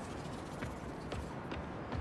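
Footsteps tap softly on a hard rooftop.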